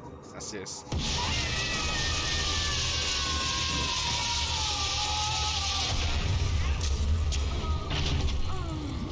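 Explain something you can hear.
Electricity crackles and roars loudly, then fades.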